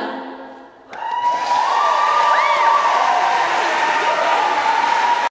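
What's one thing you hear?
Young women cheer and whoop.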